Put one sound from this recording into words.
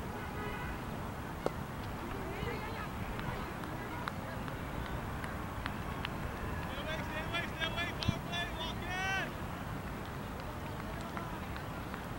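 Men talk and call out to each other outdoors at a distance.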